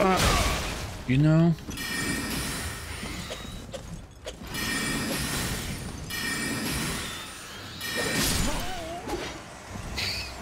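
Swords clash and slash in combat.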